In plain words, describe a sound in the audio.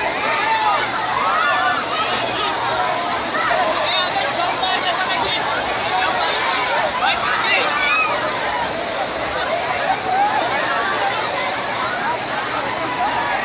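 A large crowd of children and teenagers shouts and screams excitedly outdoors.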